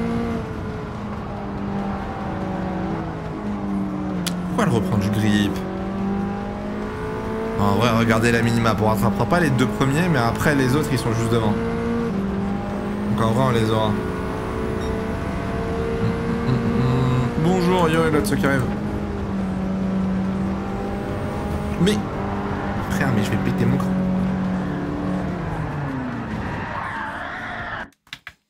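A racing car engine roars steadily, its pitch rising and falling as it shifts gears.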